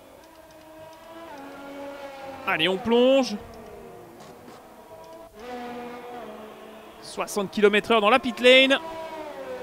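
A racing car engine whines steadily and shifts in pitch.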